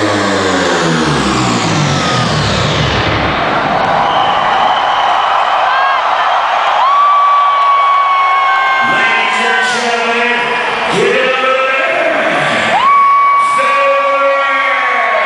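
A huge crowd cheers and shouts.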